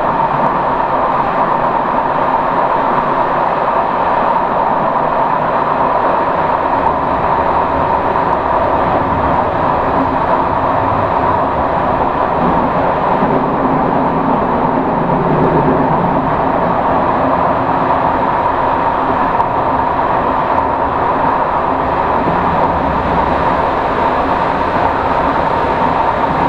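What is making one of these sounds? A train's engine drones steadily.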